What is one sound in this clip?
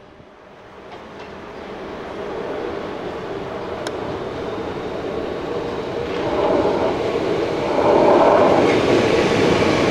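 Another train rolls in, growing louder as it nears.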